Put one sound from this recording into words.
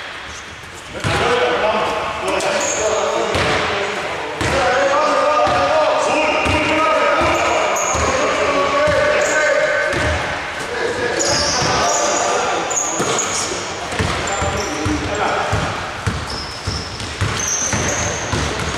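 Men call out to each other across a large echoing hall.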